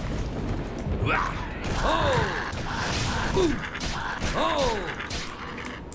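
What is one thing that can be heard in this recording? A creature growls and shrieks.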